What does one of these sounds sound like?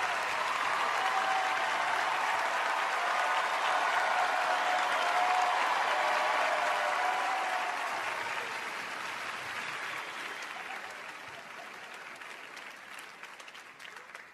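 A large audience applauds and cheers loudly in a big echoing hall, then slowly fades.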